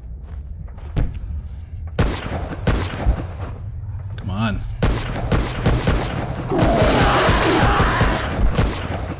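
A rifle fires single shots in quick succession, each with a sharp crack.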